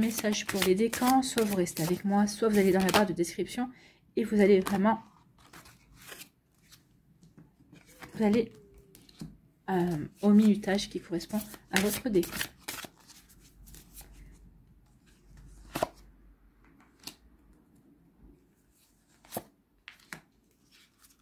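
Playing cards riffle and flutter as a deck is shuffled.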